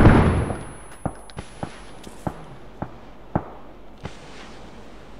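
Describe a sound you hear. Footsteps thud at a steady pace on hard ground.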